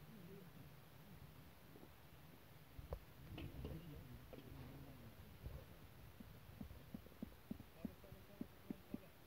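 Fired clay bricks are set down and tapped into place on a concrete roof.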